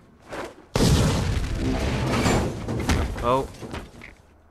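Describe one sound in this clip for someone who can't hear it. An explosion bursts with a loud roar.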